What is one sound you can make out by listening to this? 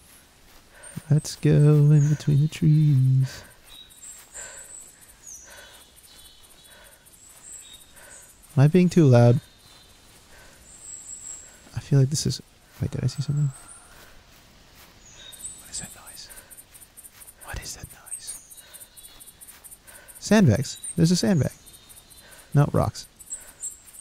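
A young man talks close into a microphone, in short bursts.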